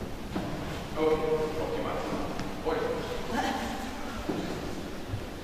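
A man speaks briefly in an echoing hall.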